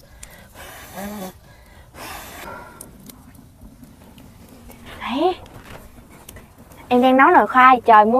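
A wood fire crackles under a pot.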